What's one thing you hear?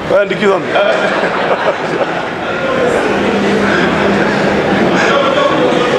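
Men laugh aloud nearby.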